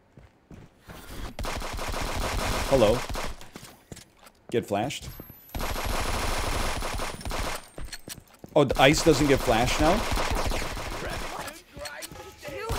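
Gunshots fire rapidly.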